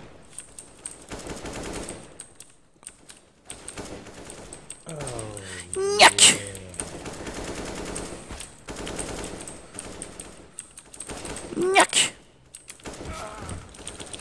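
Rifle shots crack in a video game.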